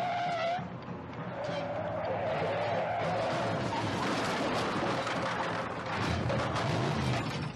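A car engine roars as the car speeds along.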